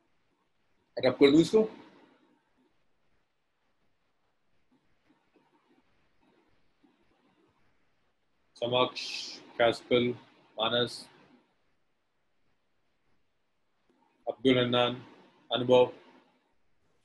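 A young man speaks calmly into a microphone in short bursts.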